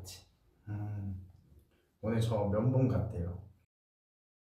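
A young man speaks calmly close to a microphone.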